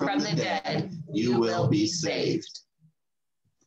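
A young man speaks steadily over an online call, then falls silent.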